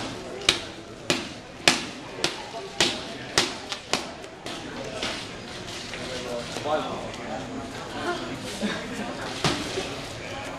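Gloved punches smack sharply against pads in quick succession.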